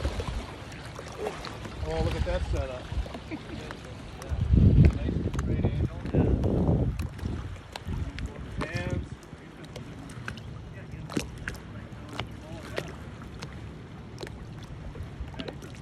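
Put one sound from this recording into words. Water laps and splashes gently around a floating swimmer.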